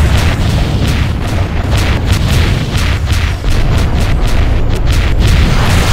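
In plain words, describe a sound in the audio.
Rapid laser blasts fire over and over.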